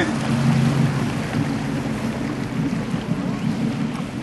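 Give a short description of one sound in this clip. Water churns and splashes against a hull.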